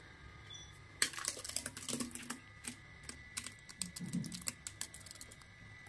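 A spoon scrapes thick batter out of a metal jar into a metal bowl.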